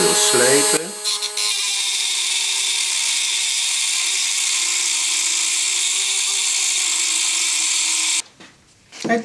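A small rotary tool whirs steadily at high speed.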